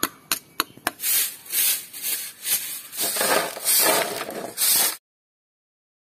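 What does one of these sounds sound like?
A stiff broom sweeps across a concrete floor.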